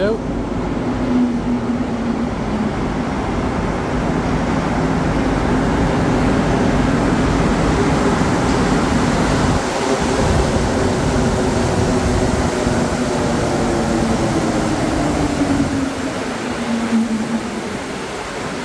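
A subway train pulls in with a rumbling, falling whine, heard in an echoing underground station.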